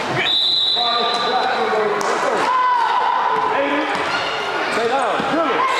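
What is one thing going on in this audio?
Sneakers squeak sharply on a wooden court in a large echoing gym.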